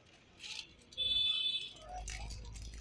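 A plastic bag rustles close by.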